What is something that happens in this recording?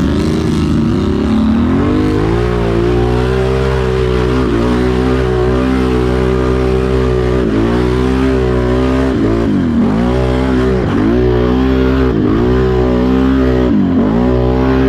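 An all-terrain vehicle engine roars close by, revving up and down.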